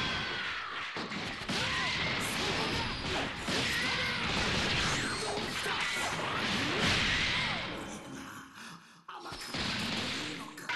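Punches and kicks land with sharp impacts.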